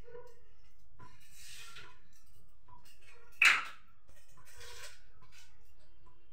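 Dishes clatter and clink nearby.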